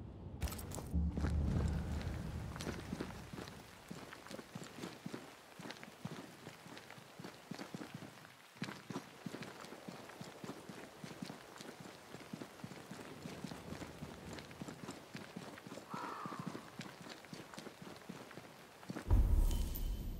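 Footsteps crunch on gravel and grass as a man runs.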